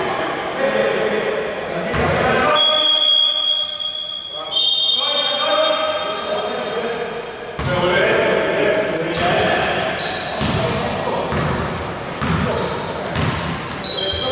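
Sneakers squeak on a hard court in a large echoing hall.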